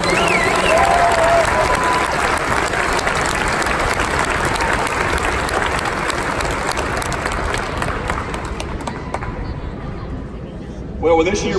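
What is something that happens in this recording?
A crowd cheers and applauds in a large echoing hall, then quiets down.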